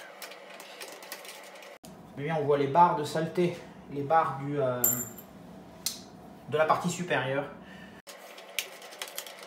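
A metal casing clicks and rattles as hands handle it.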